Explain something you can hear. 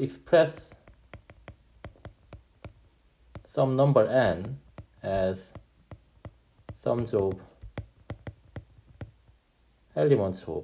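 A stylus taps and scratches on a glass tablet.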